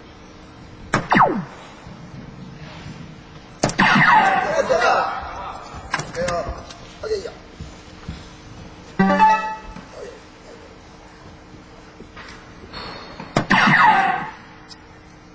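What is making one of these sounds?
A dart thuds into a board.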